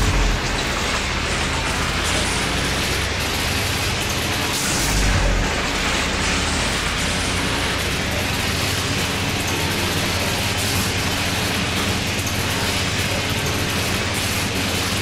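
Electricity crackles and hisses steadily, swelling briefly into a louder burst.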